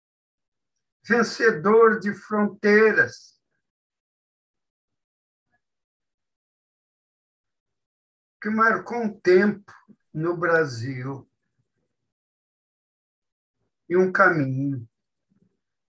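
An elderly man speaks with animation over an online call, in short bursts with pauses.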